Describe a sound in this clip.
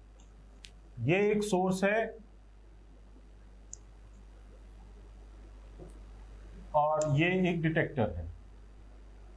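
A man speaks calmly and clearly into a close microphone, in short bursts.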